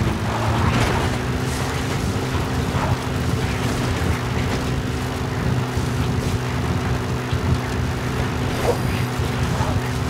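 A jeep engine rumbles steadily as the vehicle drives along.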